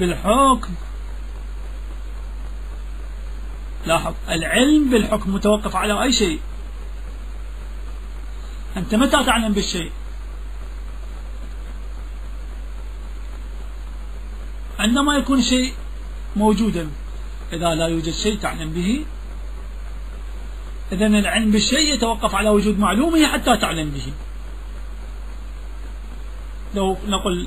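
A man speaks slowly and solemnly, with long pauses, heard through a microphone.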